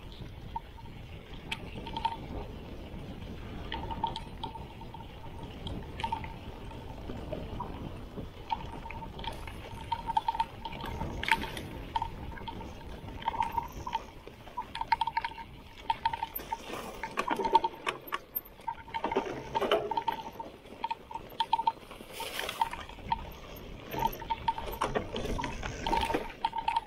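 Knobby bike tyres rumble and crunch over a dirt trail.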